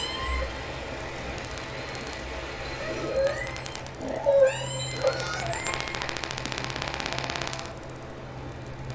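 A keyboard plays gliding electronic tones.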